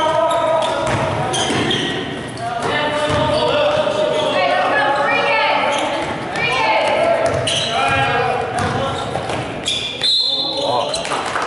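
Spectators and players shout and call out in a large echoing gym.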